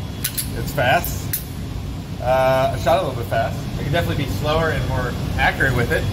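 A pistol clicks and rattles in a man's hands.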